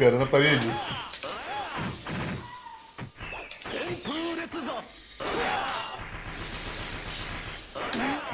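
Swords clash and swish in a fighting game.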